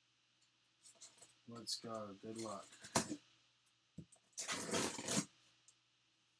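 A box cutter slices through packing tape on a cardboard box.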